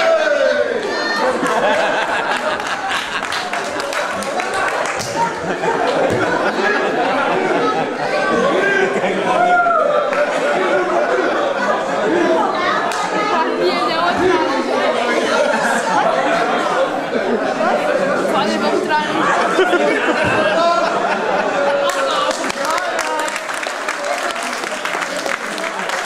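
A crowd of men and women chatters in an echoing hall.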